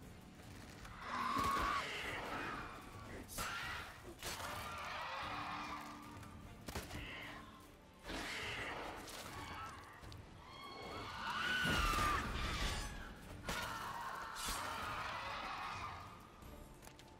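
Winged beasts screech loudly.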